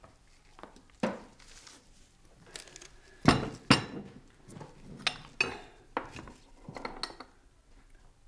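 Glass bottles clink and knock onto a wooden table.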